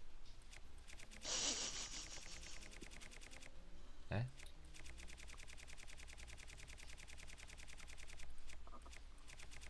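Soft clicks tick quickly in a steady rhythm.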